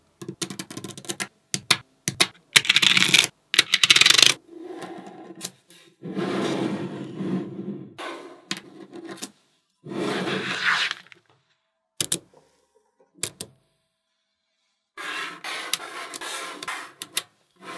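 Small magnetic balls click and clack together.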